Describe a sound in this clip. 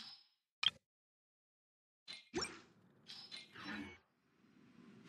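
Game menu clicks and chimes sound as items are selected.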